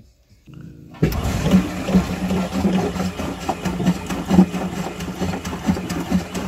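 A power drill whirs loudly.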